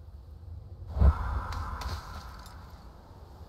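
A climber's hands and boots thud and scrape against rock.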